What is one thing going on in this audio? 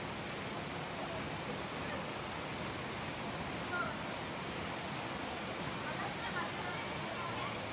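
A shallow stream babbles steadily over rocks.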